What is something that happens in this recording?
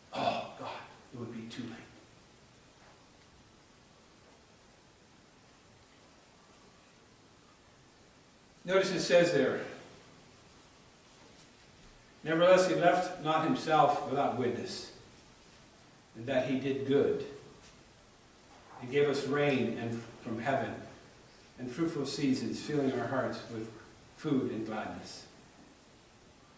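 An elderly man speaks calmly into a microphone, with pauses.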